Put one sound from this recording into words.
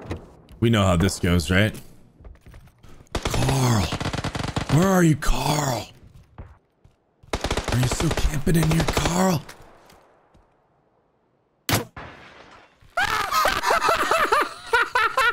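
A man talks excitedly into a microphone, close up, in loud bursts.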